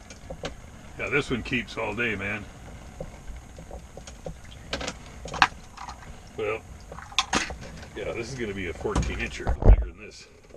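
An older man talks casually up close.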